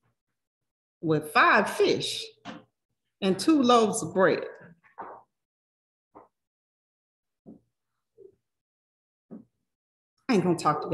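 A woman speaks with animation over a microphone in an online call, with pauses.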